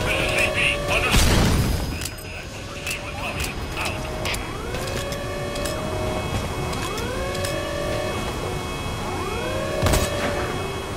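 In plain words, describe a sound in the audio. A rifle fires a few loud, sharp shots.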